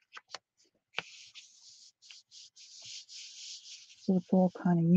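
Hands rub and press on a sheet of paper with a soft brushing sound.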